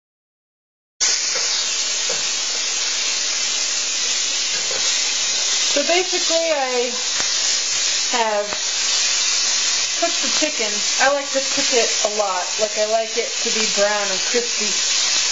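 Meat sizzles loudly in hot oil in a frying pan.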